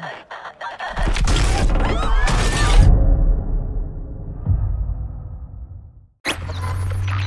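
A car crashes and tumbles with a loud roar.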